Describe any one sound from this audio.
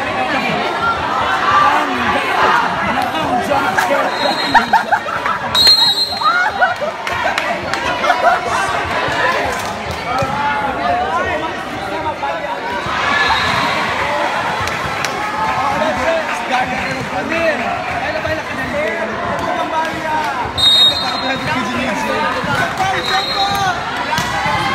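A crowd of young players and spectators chatters and calls out throughout.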